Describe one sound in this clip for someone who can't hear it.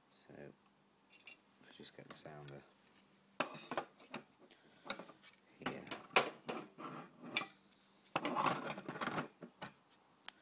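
A stick scrapes and knocks against a plastic bucket close by.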